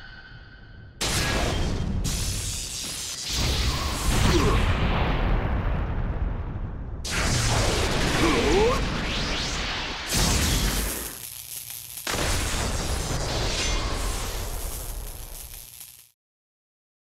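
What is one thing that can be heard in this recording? Electricity crackles and roars loudly, then cuts off abruptly.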